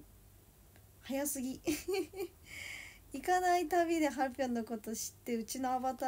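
A young woman laughs softly.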